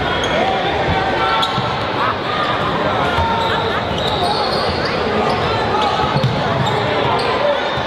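A large crowd murmurs and chatters in an echoing gym.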